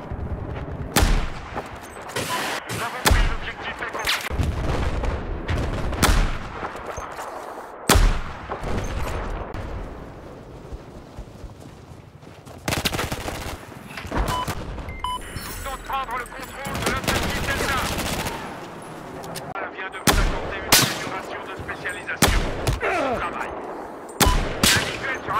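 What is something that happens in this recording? Loud gunshots crack one at a time, with short pauses between them.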